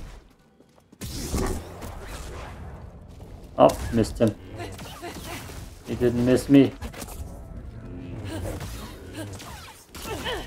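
A large beast roars and growls.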